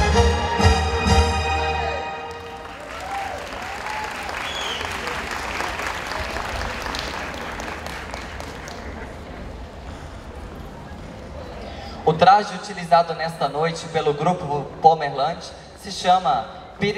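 Lively folk music plays over loudspeakers.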